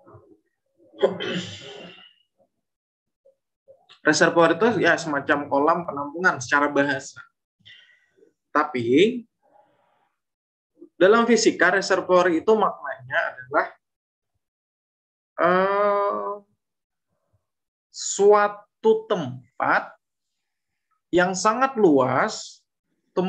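A man speaks calmly in bursts with pauses, heard through an online call.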